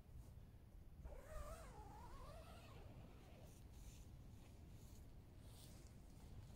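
Tent fabric rustles and flaps as it is tugged.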